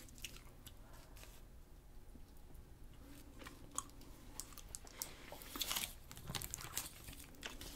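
A young woman chews and bites candy with crisp, wet crunches close to a microphone.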